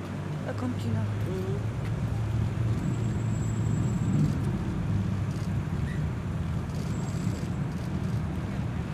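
Motorcycle engines idle and rumble slowly past.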